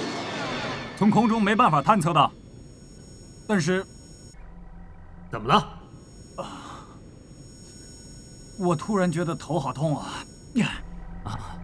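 A young man speaks strained over a radio, as if in pain.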